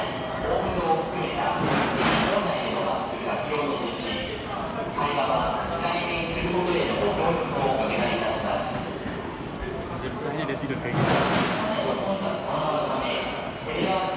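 Footsteps shuffle and tap on a hard floor.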